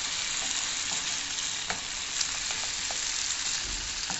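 A wooden spoon scrapes and stirs food in a pan.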